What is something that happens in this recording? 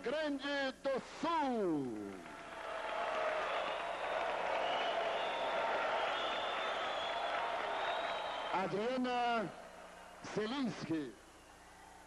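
A man sings into a microphone over a loudspeaker.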